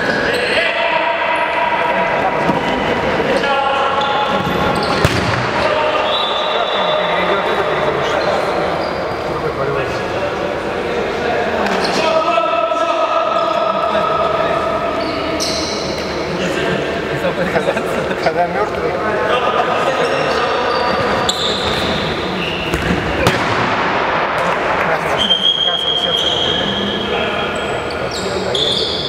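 A ball is kicked with sharp thuds that echo around a large hall.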